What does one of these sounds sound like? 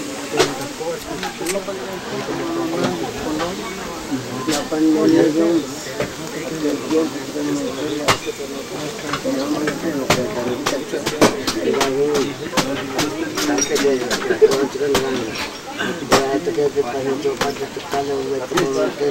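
Several men talk casually nearby outdoors.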